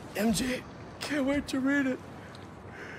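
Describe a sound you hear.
A young man answers cheerfully, close by.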